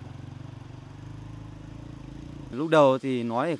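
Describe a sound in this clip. A motorcycle engine putters steadily.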